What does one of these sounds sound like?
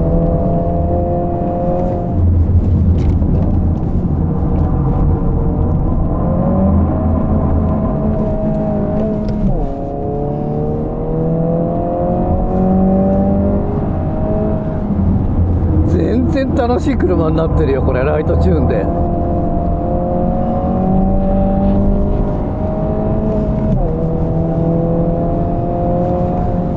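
A car engine roars loudly from inside the cabin, its pitch rising and dropping with gear changes.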